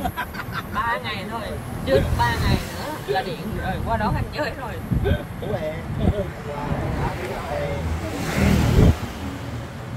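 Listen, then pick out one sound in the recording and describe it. Young passengers chat casually close by.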